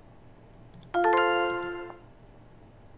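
A phone notification chime rings once.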